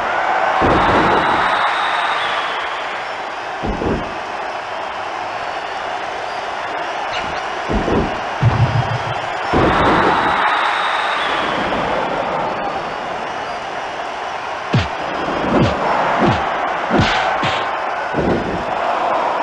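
Heavy thuds of blows and body slams land repeatedly.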